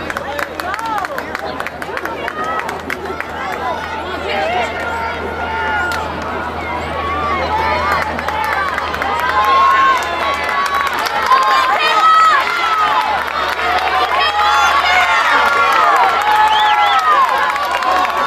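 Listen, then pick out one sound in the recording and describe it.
A crowd of spectators cheers and shouts outdoors, growing louder as runners near.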